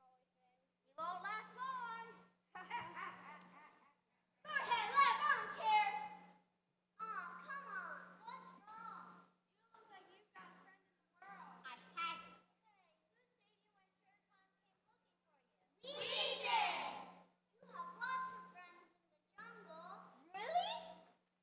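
Children speak their lines with animation through loudspeakers in a large hall, in short bursts with pauses.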